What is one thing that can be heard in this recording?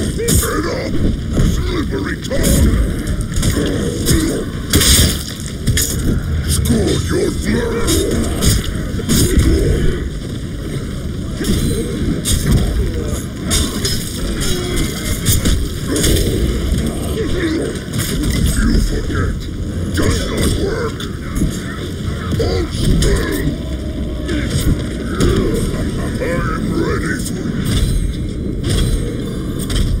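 Swords clash and strike in a fast fight.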